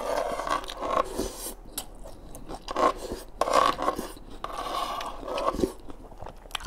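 A man slurps food loudly and close up.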